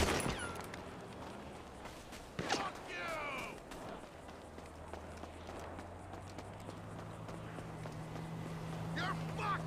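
Footsteps patter quickly on pavement.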